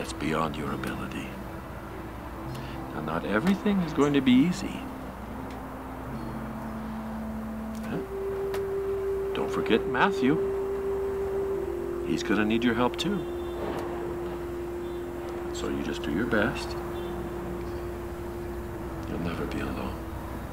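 A middle-aged man speaks softly and warmly, close by.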